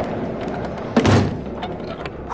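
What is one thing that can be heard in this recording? A loud thud sounds as a person falls.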